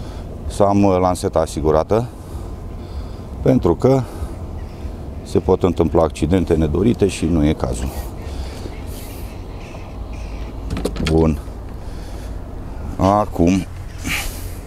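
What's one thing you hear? A middle-aged man talks calmly and close up into a clip-on microphone.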